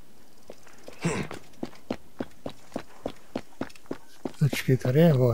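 Footsteps patter quickly across a tiled roof.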